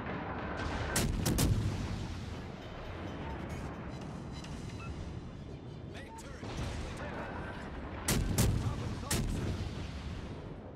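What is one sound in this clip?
Shells explode and splash into water.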